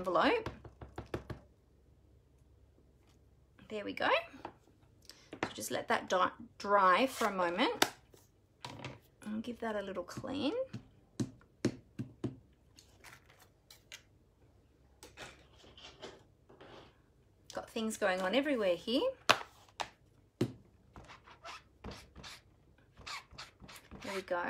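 A rubber stamp taps against an ink pad.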